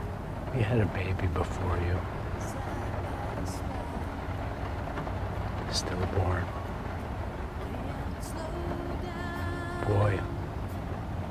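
An elderly man speaks briefly and quietly from inside a car.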